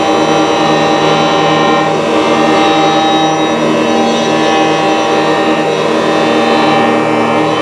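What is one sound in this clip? An acoustic guitar is bowed, producing a sustained, scraping tone.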